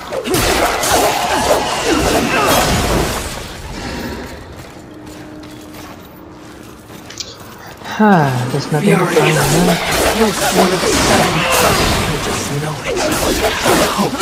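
Blows strike a creature with heavy thuds.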